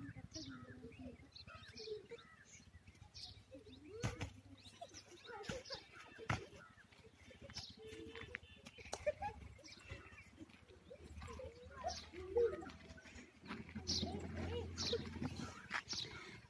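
Young children talk and call out nearby outdoors.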